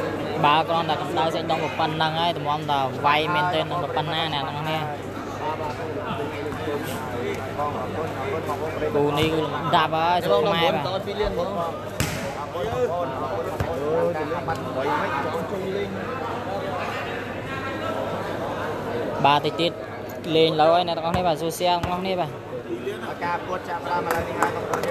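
A large crowd chatters and shouts in a big echoing hall.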